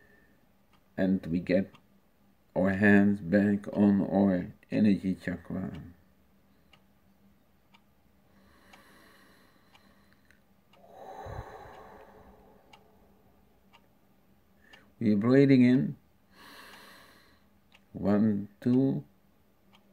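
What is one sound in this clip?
A middle-aged man speaks calmly and close up, with pauses, heard through a computer microphone.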